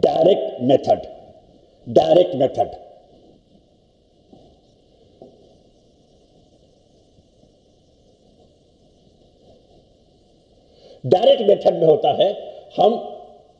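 An elderly man lectures calmly into a microphone, pausing between phrases.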